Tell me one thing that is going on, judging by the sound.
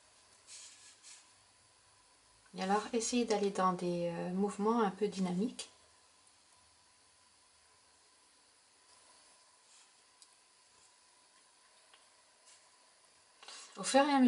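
A brush softly strokes paint onto paper.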